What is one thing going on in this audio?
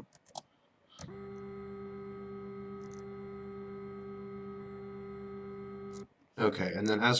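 A small engine drones steadily.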